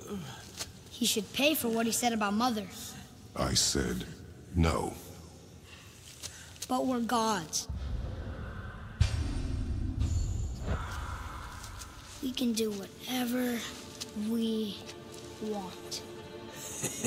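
A boy speaks with feeling.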